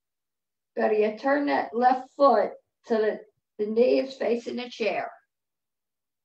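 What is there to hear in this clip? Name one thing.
An older woman speaks calmly through an online call microphone.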